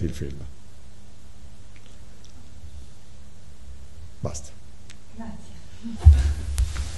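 A middle-aged man speaks briefly and calmly nearby.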